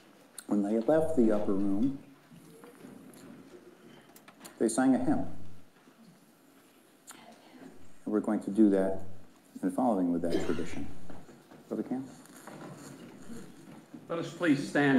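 An elderly man speaks calmly into a microphone in a large echoing hall.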